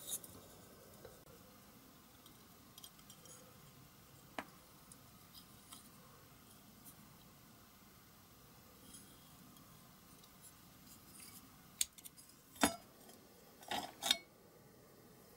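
Small metal parts click and scrape against each other as they are handled.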